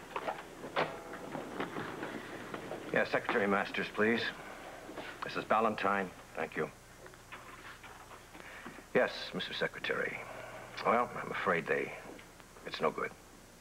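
A middle-aged man talks on a telephone in a calm, serious voice.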